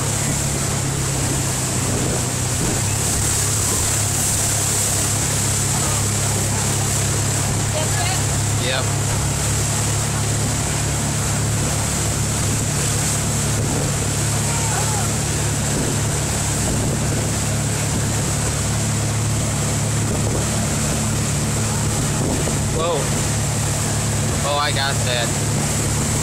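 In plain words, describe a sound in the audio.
A boat engine roars steadily.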